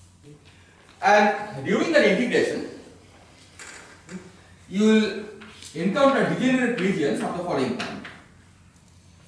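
A man speaks calmly in a large echoing room.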